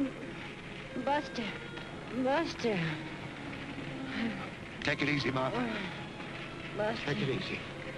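A man speaks urgently close by.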